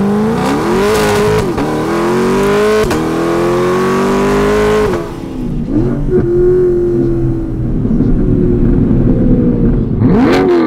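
A sports car engine roars loudly, revving up and down through the gears.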